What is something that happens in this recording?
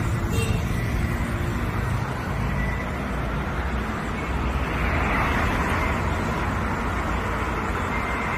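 Traffic rumbles steadily past on a busy road.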